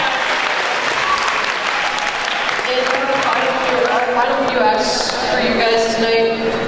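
A teenage boy speaks into a microphone, heard over loudspeakers in a large echoing hall.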